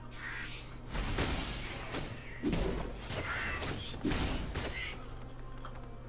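Magic blasts and blows whoosh and crack in a fast fight.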